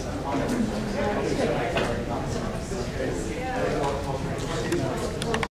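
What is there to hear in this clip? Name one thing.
Several men and women talk over one another in a room with some echo.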